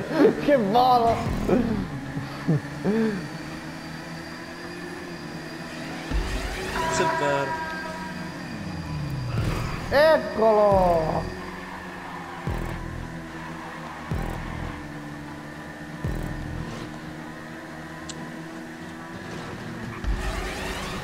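A motorbike engine drones steadily at speed.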